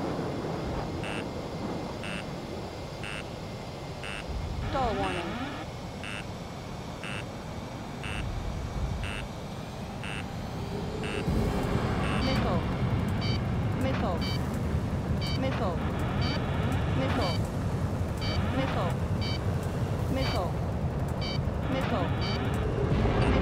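A warning alarm beeps in quick, even pulses.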